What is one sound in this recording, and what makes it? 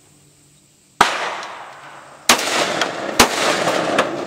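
A shotgun fires several loud blasts outdoors.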